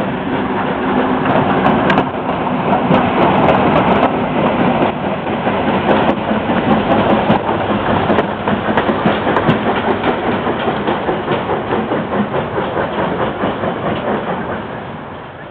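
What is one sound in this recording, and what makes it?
A steam locomotive rumbles past on the tracks, loud and close.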